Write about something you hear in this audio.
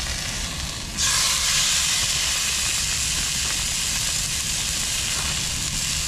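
A fish fillet sizzles loudly in a hot pan.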